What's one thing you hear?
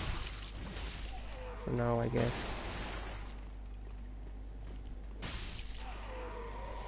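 Metal weapons clang and slash in a close fight.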